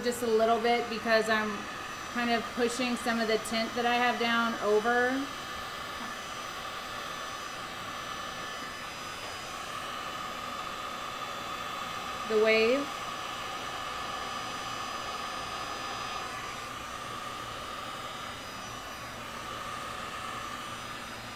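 A heat gun blows with a steady whir.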